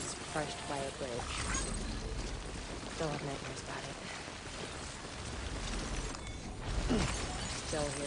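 Footsteps crunch on grassy, rocky ground.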